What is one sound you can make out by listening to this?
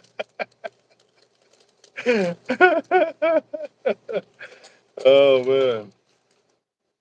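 A man laughs.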